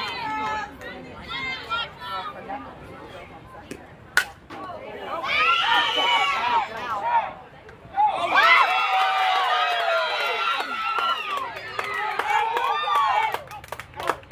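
Young girls shout and cheer loudly nearby.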